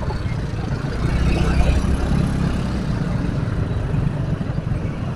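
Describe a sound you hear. A motor scooter engine runs close by.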